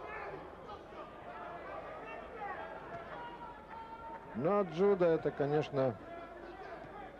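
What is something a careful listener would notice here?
A large crowd murmurs in an echoing arena.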